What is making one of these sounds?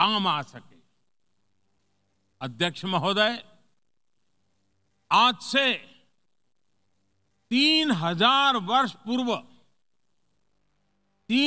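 An older man speaks through a microphone in short bursts, with pauses between phrases.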